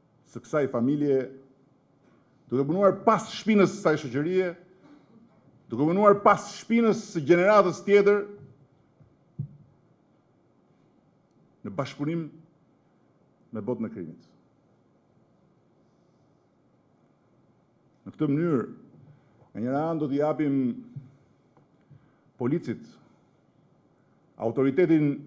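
A middle-aged man speaks forcefully through a microphone, with long pauses.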